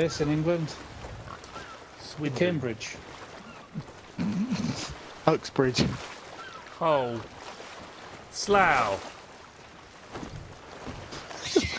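Sea waves wash softly.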